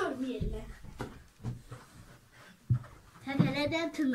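A young girl jumps and lands with a thump on a sofa.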